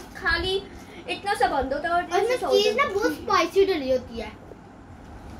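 A young girl speaks with animation close by.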